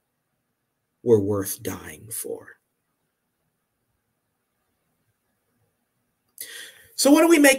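A man speaks in short phrases over an online call.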